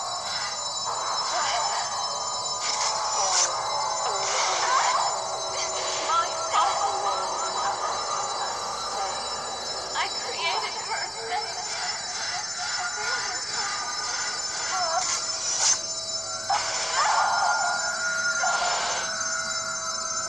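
Game sound effects whoosh and clash in short bursts.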